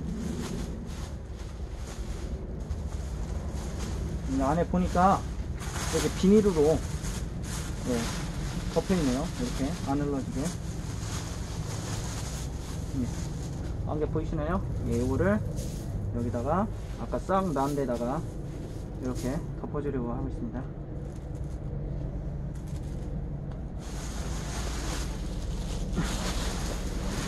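A plastic sack crinkles as it is handled.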